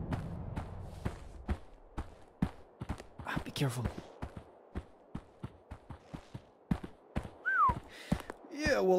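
Footsteps crunch steadily over forest ground.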